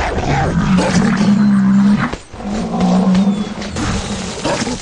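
A large beast bellows with a deep, drawn-out groan.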